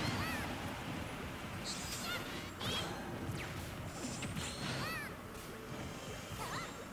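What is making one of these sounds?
Chirpy, whooshing game sound effects rise and fall.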